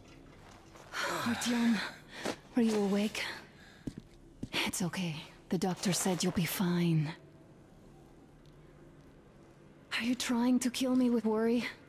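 A young woman speaks gently and closely.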